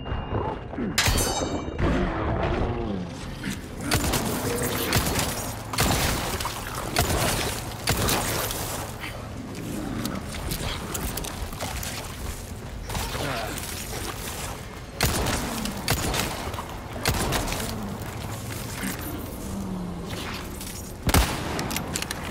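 Gunshots ring out one at a time, loud and sharp.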